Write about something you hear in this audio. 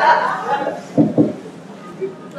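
A microphone thumps as it is handled.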